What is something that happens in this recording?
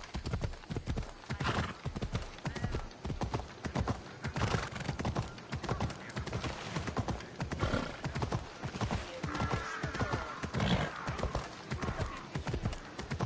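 Horse hooves gallop quickly on hard ground.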